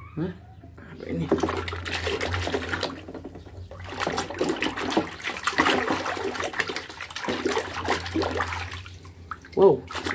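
A plastic mask is scrubbed and sloshed in soapy water.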